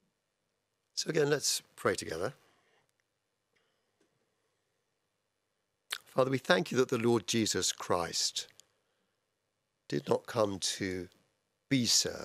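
An older man speaks calmly into a microphone, with pauses between phrases.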